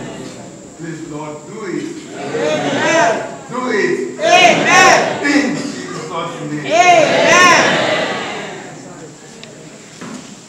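A man speaks loudly and with animation through a microphone and loudspeakers in an echoing hall.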